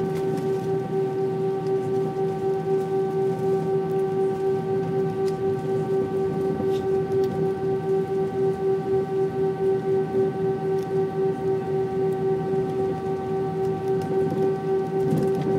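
Jet engines hum steadily with a high whine from inside an aircraft cabin.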